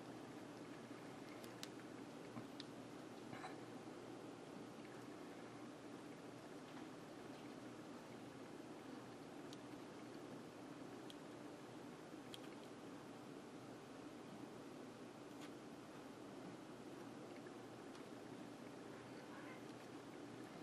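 A hot glue gun's trigger clicks softly.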